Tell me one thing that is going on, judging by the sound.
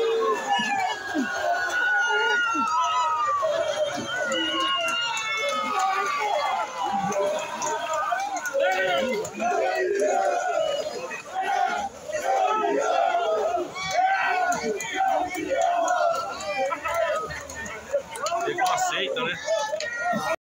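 A crowd of people shout and cheer loudly in an echoing hall.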